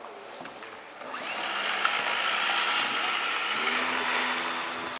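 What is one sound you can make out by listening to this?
A small electric motor whines loudly and steadily.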